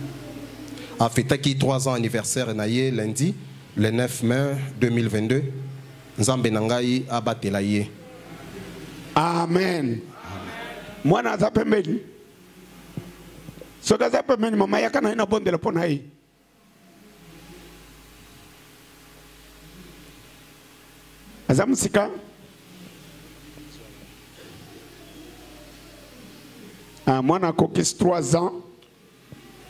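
A man speaks into a microphone over a loudspeaker, in bursts with pauses.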